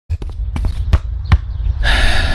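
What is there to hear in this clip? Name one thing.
A ball thuds against a foot.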